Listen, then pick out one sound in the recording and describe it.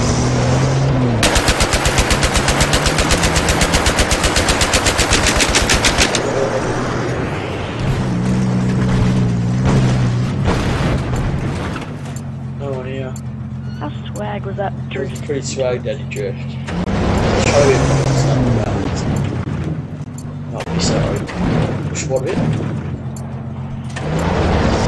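A vehicle engine drones and revs.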